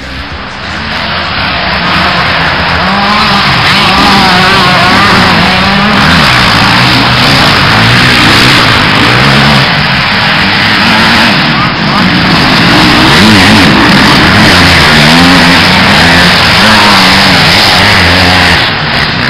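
Dirt bike engines rev loudly, rising and falling as they accelerate through turns.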